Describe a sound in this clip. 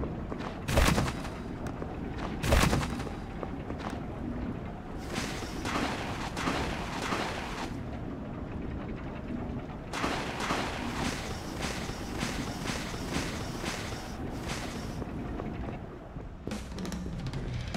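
Video game sound effects clash and swoosh over music.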